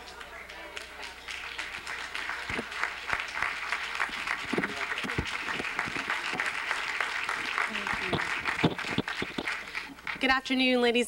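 An audience applauds warmly.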